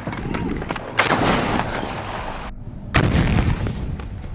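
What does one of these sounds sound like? An explosion booms with a loud blast.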